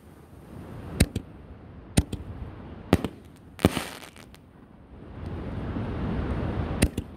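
Fireworks bang sharply overhead, one after another.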